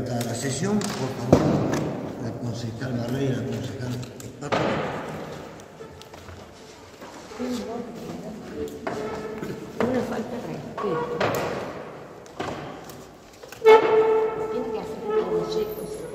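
Men and women talk nearby.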